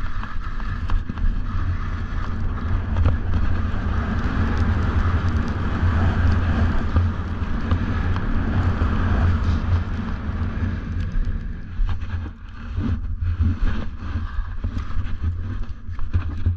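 Skis or a board hiss and scrape over snow.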